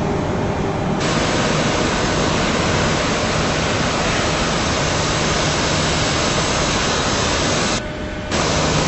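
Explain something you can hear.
A jet airliner roars loudly as it flies.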